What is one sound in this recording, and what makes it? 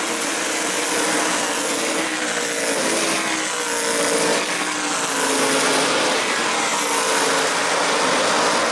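Race car engines roar loudly as cars speed around a track.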